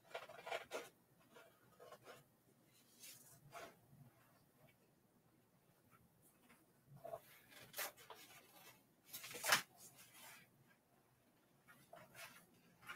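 Scissors snip through thick paper.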